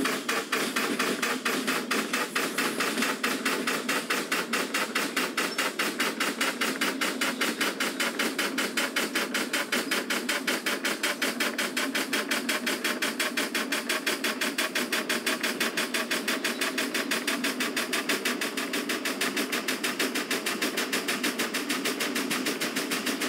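A steam locomotive chuffs rapidly and steadily as it runs.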